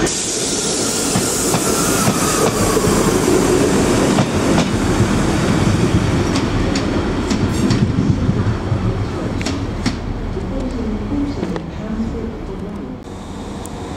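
A diesel train rumbles and pulls away along the tracks.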